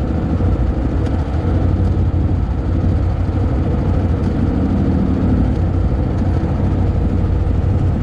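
Quad bike engines rumble steadily close by.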